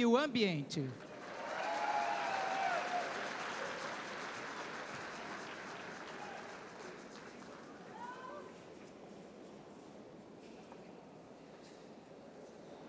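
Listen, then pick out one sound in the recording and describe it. People applaud in a large hall, slowly fading.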